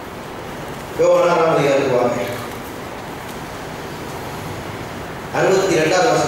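A man speaks slowly into a microphone, heard through loudspeakers with pauses between phrases.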